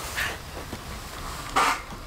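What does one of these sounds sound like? A young woman grunts with effort while climbing.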